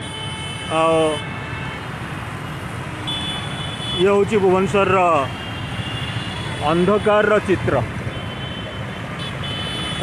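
Traffic rumbles past steadily on a road.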